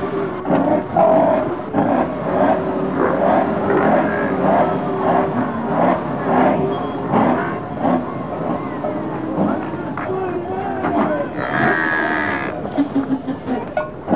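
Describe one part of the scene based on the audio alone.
A herd of buffalo bellows and snorts close by.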